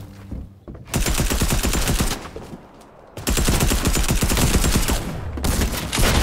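A shotgun fires in loud blasts.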